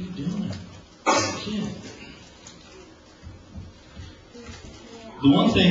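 A man speaks into a microphone over loudspeakers, in a large room with some echo.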